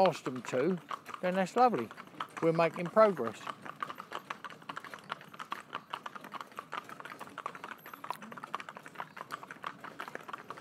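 Horses' hooves clop steadily on a paved road.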